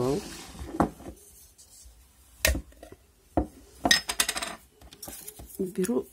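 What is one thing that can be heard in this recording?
A lid is twisted off a glass jar.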